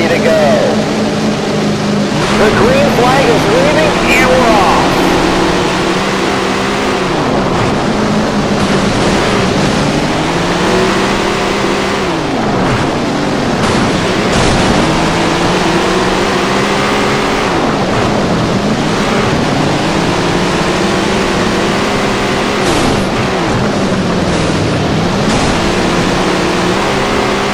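Several race car engines drone nearby.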